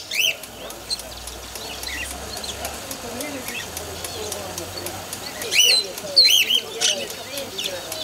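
Many small caged birds chirp and squawk loudly close by.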